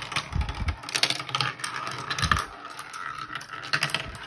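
Glass marbles clatter and roll down a plastic track.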